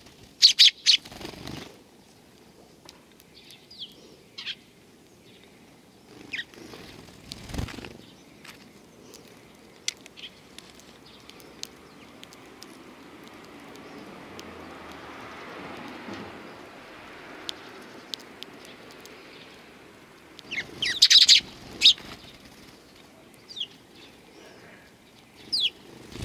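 Sparrows peck at seeds with soft taps.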